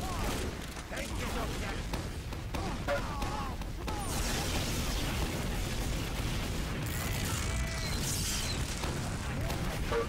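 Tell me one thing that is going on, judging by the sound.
A heavy rotary gun fires in rapid, rattling bursts.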